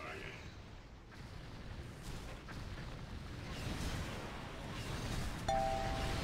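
Magic spells and combat effects crackle and boom in a fantasy video game.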